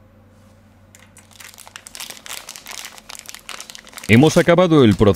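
Plastic film crinkles and rustles as it is peeled off.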